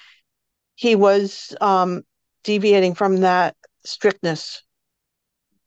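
An older woman speaks calmly and close up, heard through an online call.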